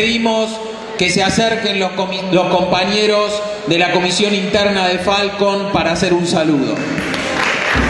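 A group of people sings together loudly in a large hall.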